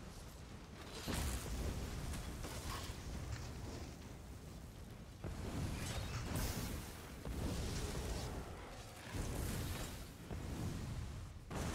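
Fire spells crackle and whoosh in loud bursts.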